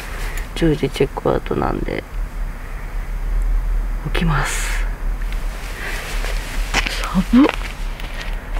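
A young man speaks in short, strained bursts close by.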